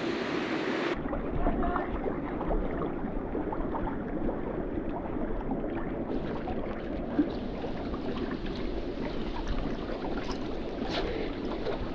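Water laps and splashes close by.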